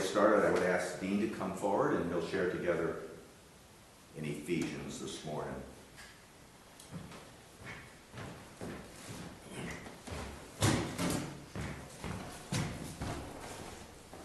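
An older man speaks calmly through a microphone in an echoing hall.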